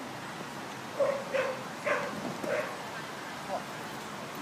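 A man calls out short commands to a dog outdoors.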